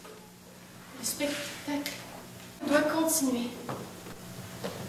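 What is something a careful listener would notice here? A young woman speaks with feeling, heard from a distance in an echoing hall.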